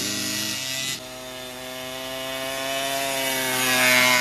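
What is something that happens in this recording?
A dirt bike engine buzzes in the distance and grows louder as it approaches.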